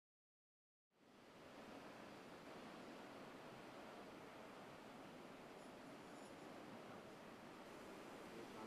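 Small waves wash and break on the shore.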